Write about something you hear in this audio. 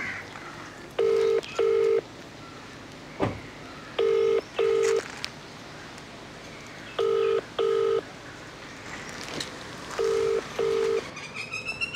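A phone beeps twice, several times over.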